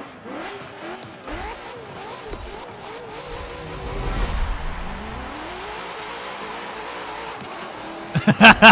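Race car engines rumble and rev.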